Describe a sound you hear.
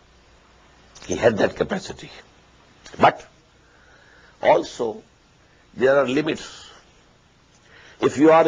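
An elderly man speaks calmly and deliberately into a microphone, with pauses between phrases.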